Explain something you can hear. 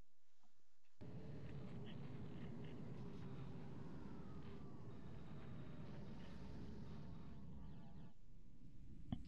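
A deep engine rumbles steadily.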